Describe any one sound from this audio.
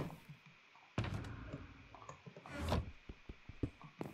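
A wooden chest lid thumps shut.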